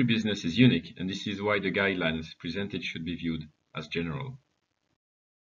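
A young man speaks calmly into a microphone, as if on an online call.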